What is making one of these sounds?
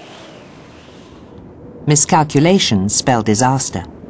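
Ocean waves break and wash ashore.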